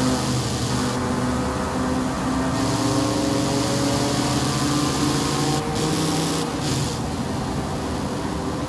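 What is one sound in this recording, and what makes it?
A truck engine hums steadily at speed.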